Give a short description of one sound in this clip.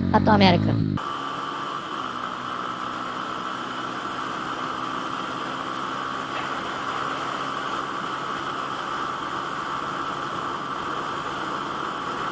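A motorcycle engine hums steadily at high speed.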